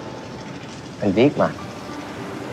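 A young man answers briefly close by.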